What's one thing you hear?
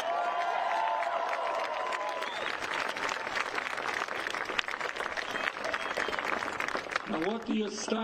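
A large crowd cheers and claps outdoors.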